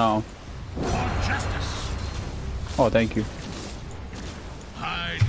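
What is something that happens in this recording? A young man talks into a close microphone with animation.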